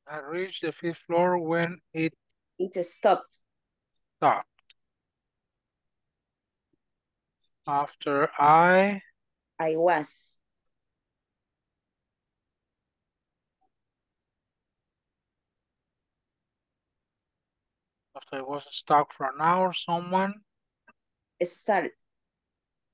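A man speaks calmly in short bursts through a microphone, with long pauses.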